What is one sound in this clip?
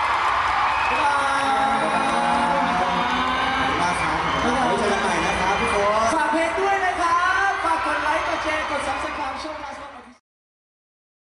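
A young man sings into a microphone over loudspeakers.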